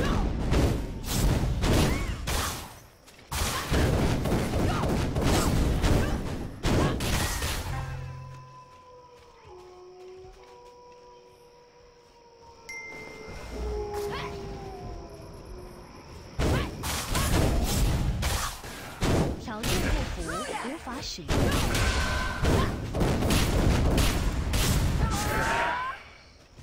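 Game combat effects whoosh and clash with loud impacts.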